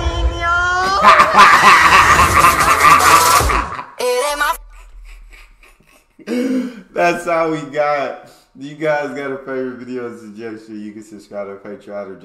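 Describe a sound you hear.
A young man laughs loudly into a microphone.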